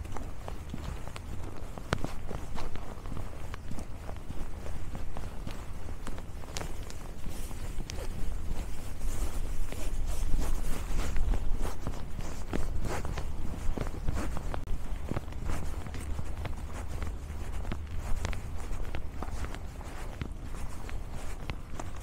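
Footsteps crunch on packed snow at a steady walking pace.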